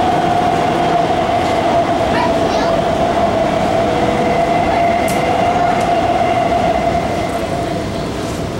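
A train's motor whines at a steady pitch, then fades out.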